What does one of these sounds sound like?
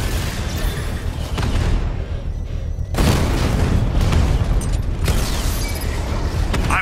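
A heavy armored vehicle's engine roars with a deep rumble.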